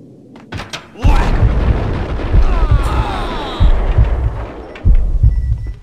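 Submachine guns fire in rapid bursts in a room.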